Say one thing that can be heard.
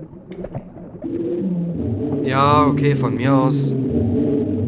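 A large reptile growls and hisses.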